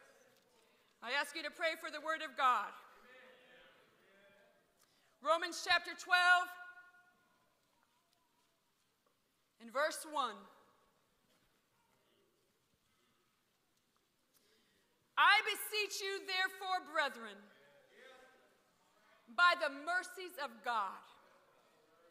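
A young woman speaks calmly into a microphone, heard through loudspeakers in a large echoing hall, with pauses between phrases.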